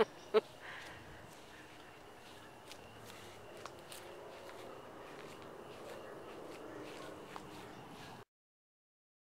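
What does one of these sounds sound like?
A young woman speaks quietly nearby outdoors.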